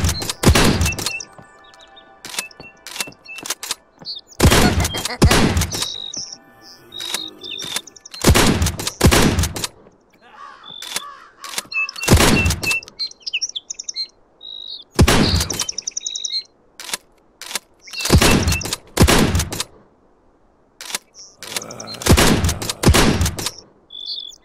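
A shotgun fires in loud blasts, one after another.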